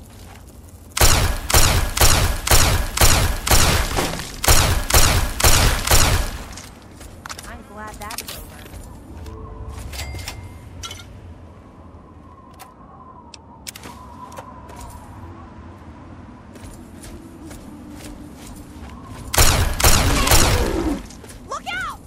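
A weapon fires rapid, crackling energy shots in bursts.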